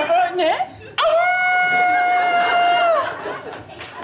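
A young man makes a long, drawn-out sung wail.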